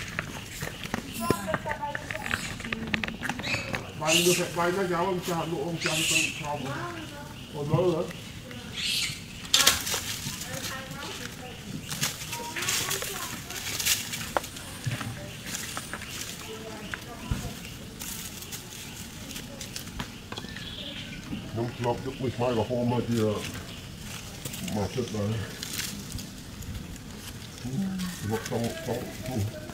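Dry leaves rustle and crackle as monkeys move about.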